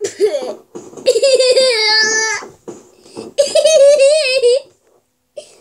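A young boy shouts in a high, sing-song voice close by.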